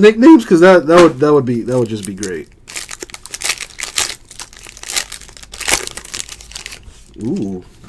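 A foil wrapper crinkles and tears as it is pulled open.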